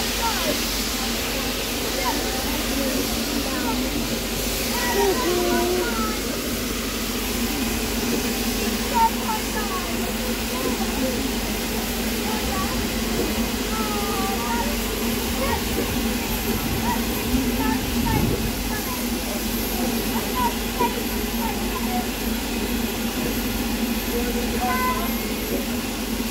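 A steam locomotive idles close by with a steady rumble and hiss.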